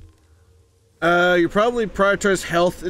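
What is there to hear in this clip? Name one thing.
A man talks loudly and with animation, close to a microphone.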